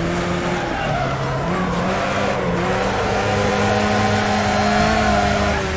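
Tyres skid and scrabble on loose dirt.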